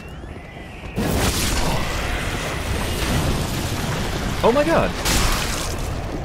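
A magic blast bursts with a roar.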